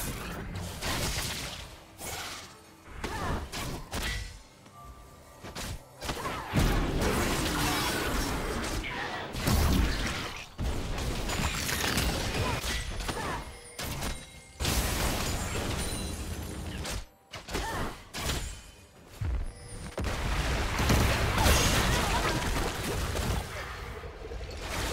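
Game spell effects whoosh and crackle in a fight.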